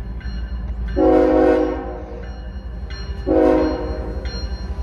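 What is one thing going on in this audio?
A train horn blows loudly twice.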